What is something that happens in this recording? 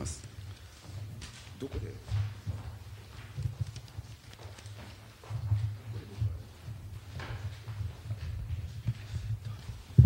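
Footsteps thud across a wooden stage.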